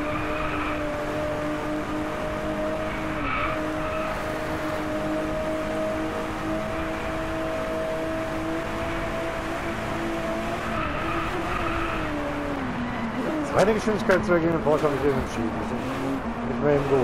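A car engine roars steadily at high speed, then drops in pitch as the car slows.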